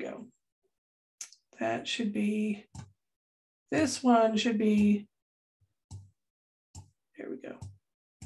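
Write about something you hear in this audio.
A woman speaks calmly into a microphone, in short phrases with pauses.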